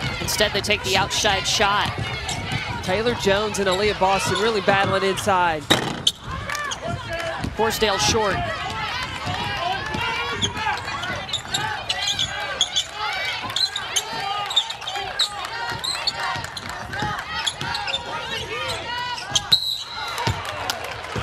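Sneakers squeak sharply on a hardwood floor.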